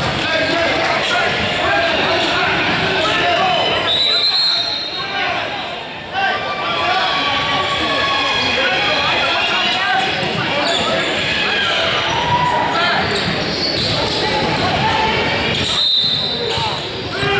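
People talk and call out across a large echoing gym.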